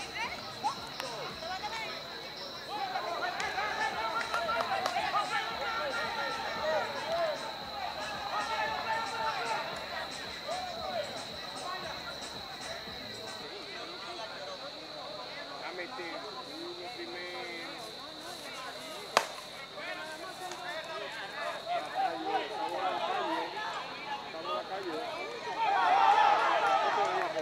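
Men and boys shout and call out across an open field outdoors.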